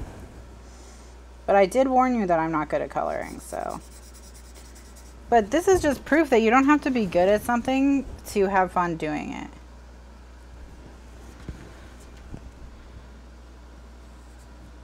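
A marker squeaks and scratches softly on paper.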